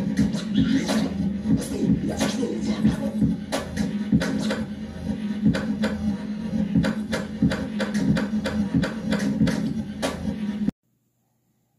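A drum machine plays a busy electronic beat.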